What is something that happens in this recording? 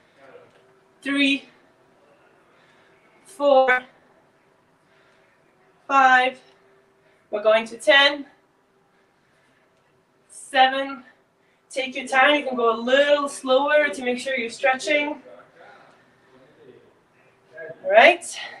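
A young woman speaks up close in short, energetic bursts, with pauses between them.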